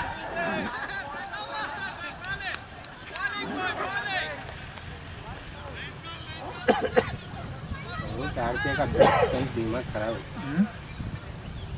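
Young men call out and shout across an open outdoor field.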